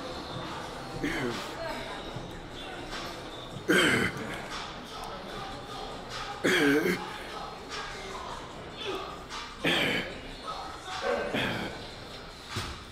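A man speaks and grunts with effort close by.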